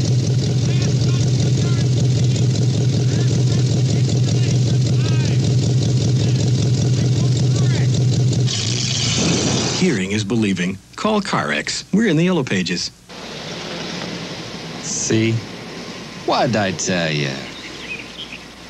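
A man speaks from a car window, calmly, to the listener.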